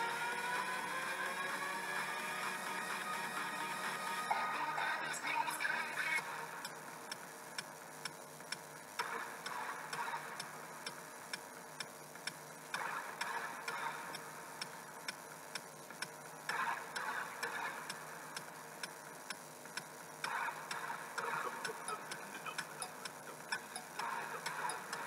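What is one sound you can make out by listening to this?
Music plays through small laptop speakers, heard in a quiet room.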